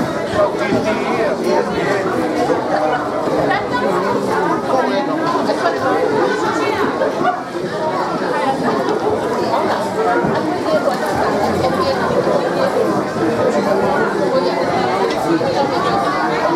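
A crowd of men, women and children chatters loudly all around in a large echoing hall.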